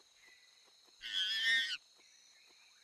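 A chimpanzee screeches loudly.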